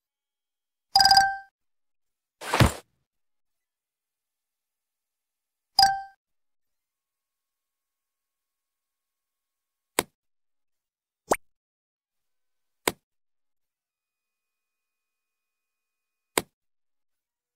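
Short game interface clicks and chimes sound now and then.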